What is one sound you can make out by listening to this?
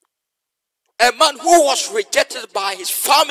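A man speaks with animation into a microphone, heard over an online call.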